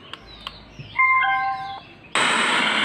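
A portable speaker gives a few short electronic beeps.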